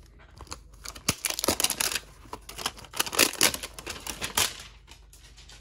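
Plastic wrapping crinkles and rustles as hands tear it off.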